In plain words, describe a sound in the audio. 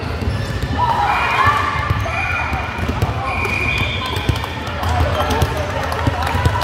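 Young women call out across a large echoing hall.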